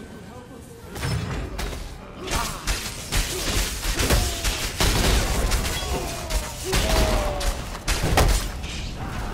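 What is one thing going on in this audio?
Electric spells zap and crackle.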